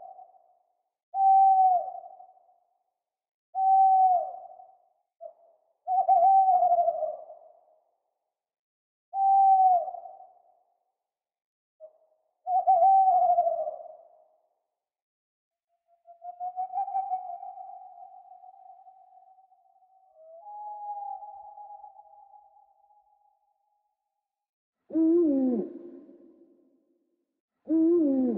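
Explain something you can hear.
An owl hoots again and again, loud and close.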